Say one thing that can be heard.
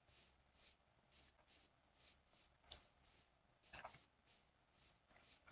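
Footsteps crunch softly on grass at a steady pace.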